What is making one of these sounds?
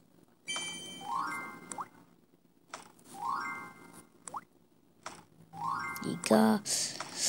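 Short rising electronic chimes play from a game.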